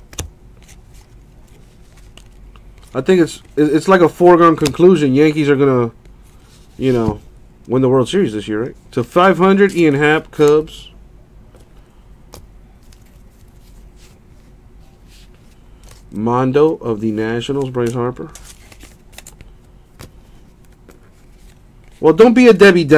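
Trading cards rustle and slide against each other as hands shuffle them.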